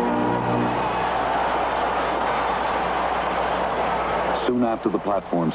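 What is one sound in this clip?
A large crowd cheers and applauds in a stadium.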